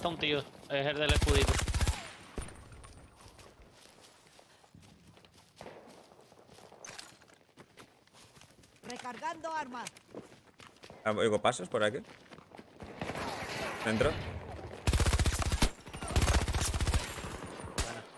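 Rapid gunfire bursts out.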